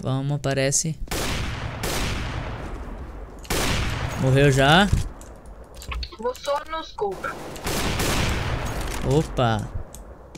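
A sniper rifle fires loud shots that ring out.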